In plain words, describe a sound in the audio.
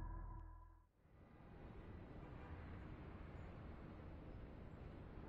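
Wind blows steadily across a high rooftop.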